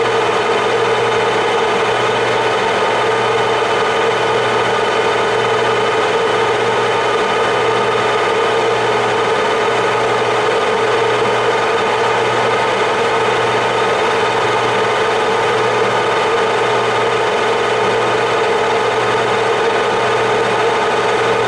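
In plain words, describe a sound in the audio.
A metal lathe hums steadily.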